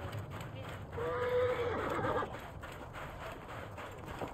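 Horse hooves thud on sand.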